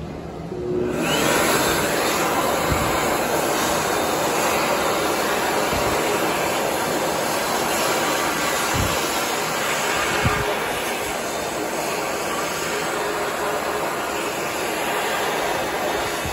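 A hand dryer blows with a loud, steady roar.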